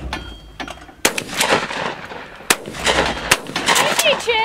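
A shotgun fires loud, sharp blasts outdoors.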